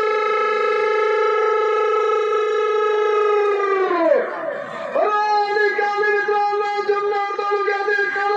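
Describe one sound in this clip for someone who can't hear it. A man shouts a long, drawn-out call into a microphone, heard through loudspeakers.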